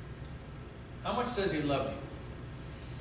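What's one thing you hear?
A middle-aged man speaks calmly in a room with a slight echo.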